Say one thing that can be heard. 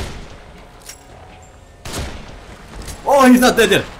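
A gunshot rings out sharply.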